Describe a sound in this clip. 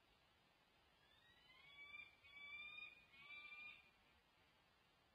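A falcon gives a series of sharp, rising calls close by.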